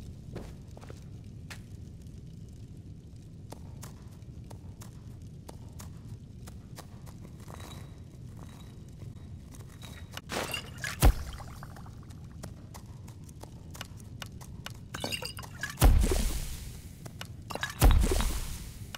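Soft menu clicks tick repeatedly as items are scrolled through.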